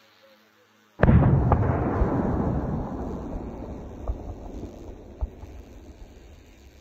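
An explosion booms in the distance and rumbles away.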